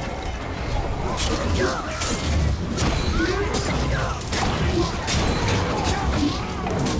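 Blades clash and slash in a fight.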